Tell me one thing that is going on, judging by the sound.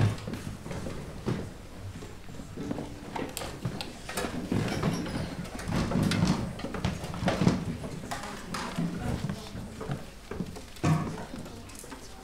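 Footsteps thud across a wooden stage.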